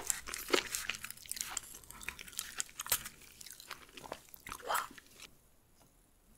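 Scissors snip and crackle through a crunchy shell close up.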